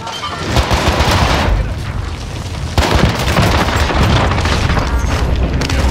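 Pistol shots crack in rapid bursts.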